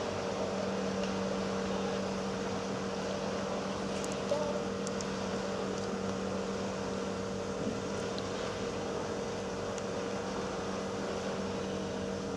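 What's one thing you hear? A paddle steamer's engine hums steadily nearby.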